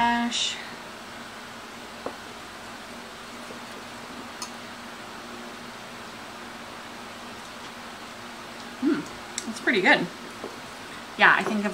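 A spoon clinks against a bowl while stirring.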